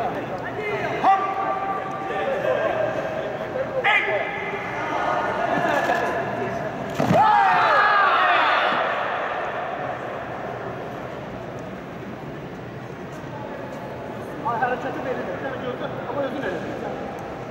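A man shouts commands loudly in a large echoing hall.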